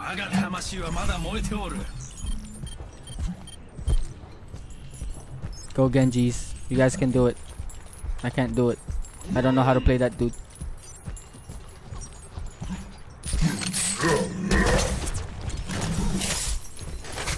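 Footsteps patter on a hard floor and stone street.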